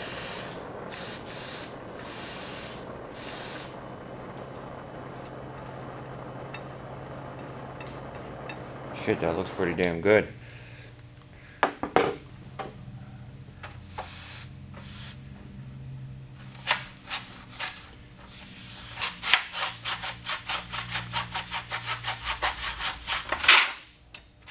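A cloth rubs briskly over a metal surface in quick strokes.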